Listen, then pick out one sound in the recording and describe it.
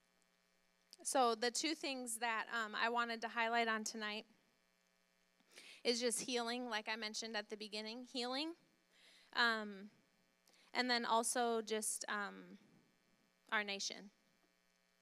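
A young woman speaks calmly through a microphone.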